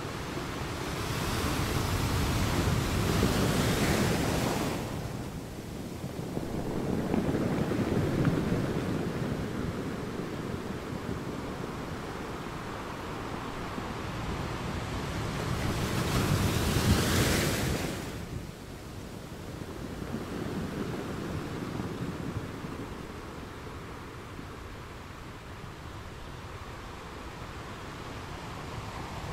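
Ocean waves crash and roar against rocks, rising and falling in surges.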